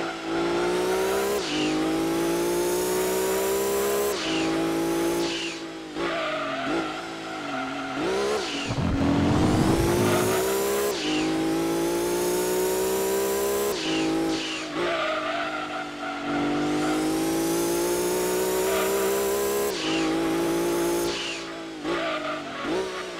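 A racing car engine roars and revs up and down as gears shift.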